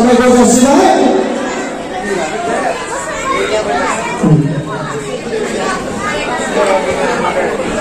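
Men and women chatter and talk nearby.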